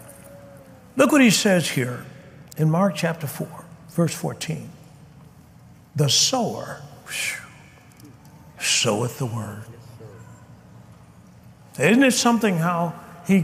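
A man preaches with animation into a microphone.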